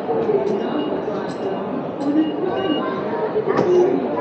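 Ticket gates beep as people pass through.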